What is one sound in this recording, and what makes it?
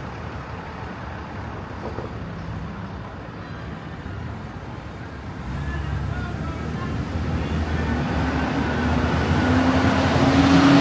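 Traffic rumbles along a nearby street and grows louder.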